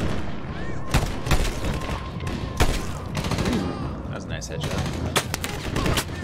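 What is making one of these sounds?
A rifle fires loud, sharp single shots.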